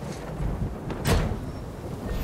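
A wooden chest rattles with a knock.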